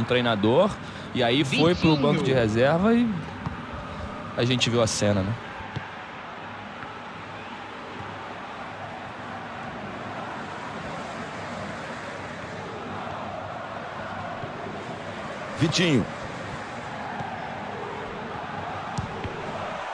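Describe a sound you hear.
A large stadium crowd roars and murmurs steadily in the distance.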